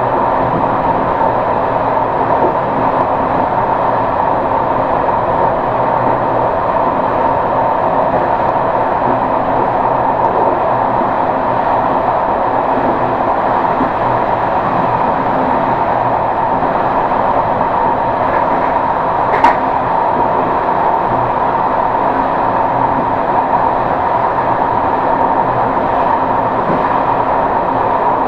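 A train rumbles steadily along the rails from inside the cab.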